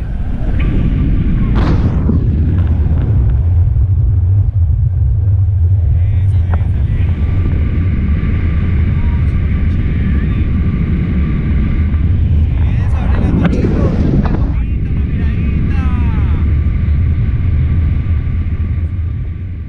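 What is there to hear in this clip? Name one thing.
Wind roars steadily against a microphone.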